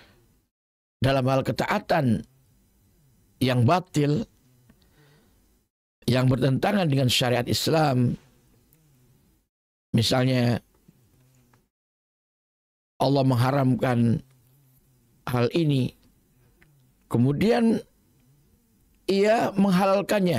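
An elderly man speaks animatedly into a close microphone, in short bursts with pauses.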